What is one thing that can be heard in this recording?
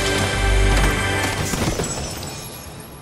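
A treasure chest opens with a bright chiming jingle.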